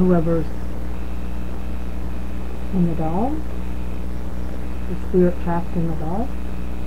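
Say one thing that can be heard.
An electronic device gives out short warbling, wavering tones.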